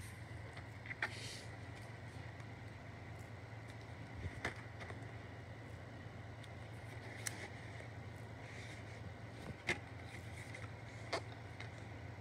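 A plastic case clicks and taps as it is handled.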